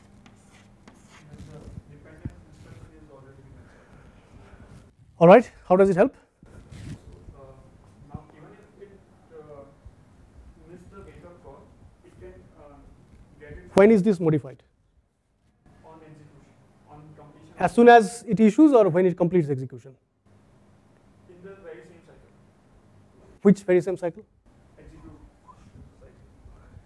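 A man speaks calmly through a clip-on microphone.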